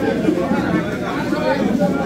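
A man speaks loudly to the crowd.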